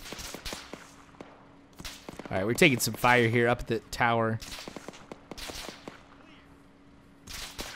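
Footsteps tread on dirt at a steady walking pace.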